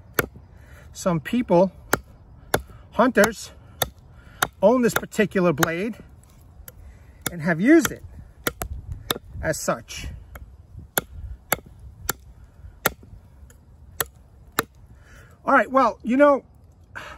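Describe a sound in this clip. A knife blade chops sharply into wood again and again.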